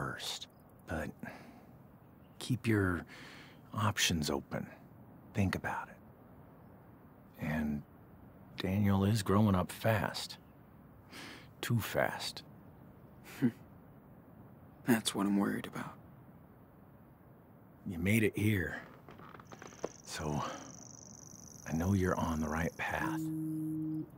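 A man speaks calmly and warmly up close.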